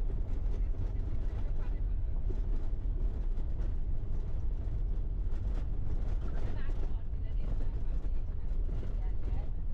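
A vehicle's engine rumbles steadily from inside the cabin.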